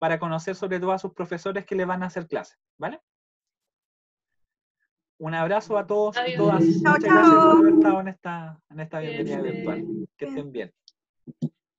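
A young woman speaks animatedly over an online call.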